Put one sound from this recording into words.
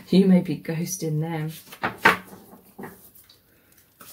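A card is laid down on a table with a light tap.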